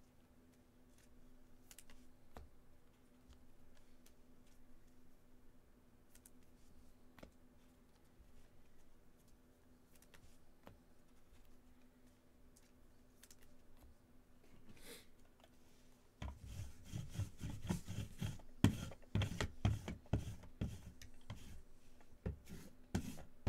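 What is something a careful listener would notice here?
Plastic card holders click and rustle as they are handled.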